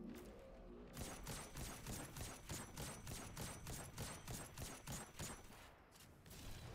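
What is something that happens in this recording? A rifle fires a rapid series of sharp shots.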